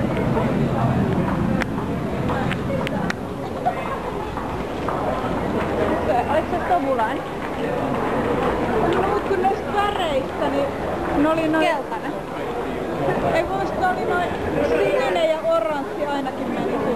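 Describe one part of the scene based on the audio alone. A crowd of people walks and chatters in a large echoing hall.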